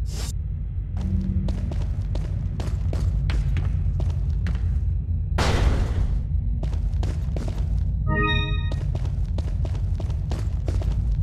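Footsteps tread on a hard metal floor.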